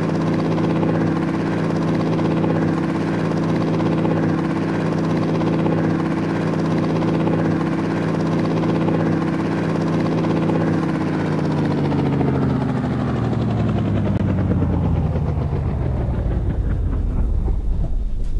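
A helicopter engine whines steadily, then slowly winds down.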